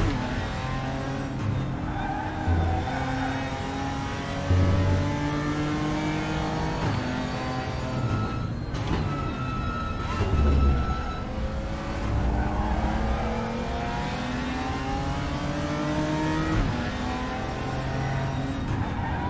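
A race car engine roars close by, rising in pitch and dropping sharply with each gear change.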